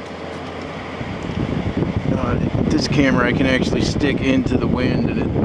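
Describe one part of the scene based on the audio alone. An air conditioner fan starts up and blows with a loud rush.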